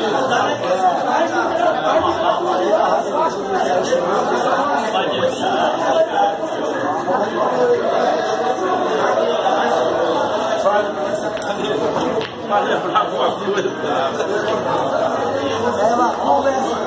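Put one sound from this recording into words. A crowd of men chatter in a busy room.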